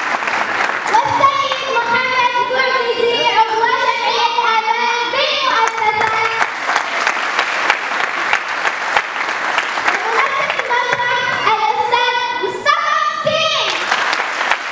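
A young girl sings into a microphone in a large hall.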